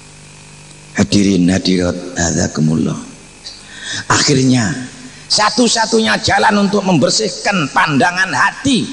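An elderly man speaks forcefully into a microphone, heard through a loudspeaker.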